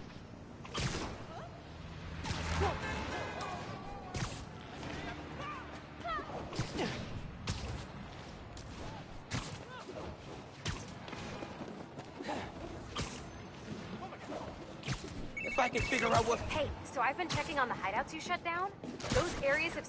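Air whooshes past in rapid swoops.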